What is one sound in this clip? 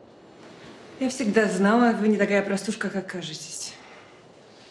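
A woman speaks with expression, close by.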